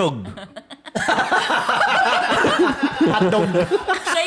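Several young women and men laugh loudly together close to microphones.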